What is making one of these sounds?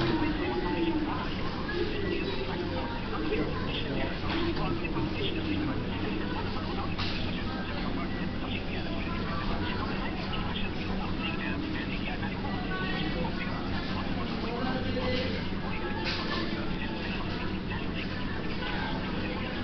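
A busy room murmurs with many distant voices.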